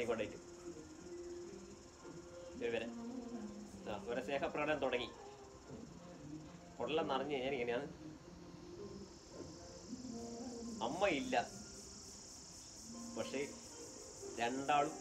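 A middle-aged man speaks calmly and close by, pausing between phrases.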